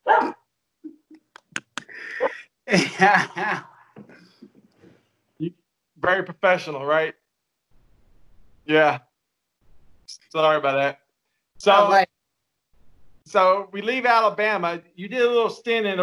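A second man laughs over an online call.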